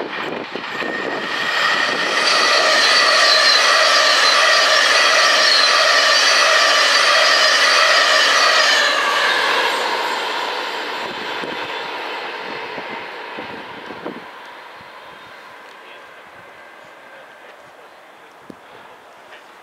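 A steam locomotive chuffs as it pulls away and fades into the distance.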